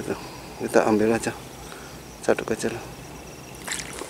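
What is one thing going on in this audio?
A net splashes into shallow water.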